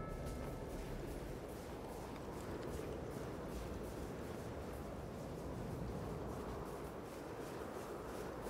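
Snow hisses as a figure slides down a slope.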